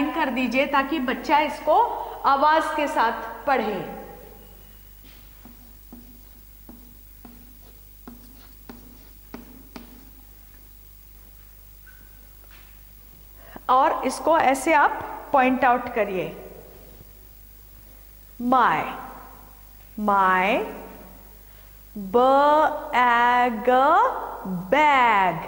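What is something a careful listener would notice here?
A middle-aged woman speaks clearly and with animation, close by.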